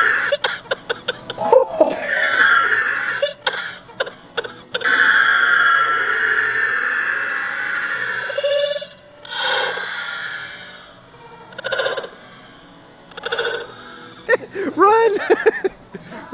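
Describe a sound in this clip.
A man laughs loudly and heartily close by.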